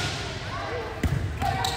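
A volleyball thumps as a player hits it.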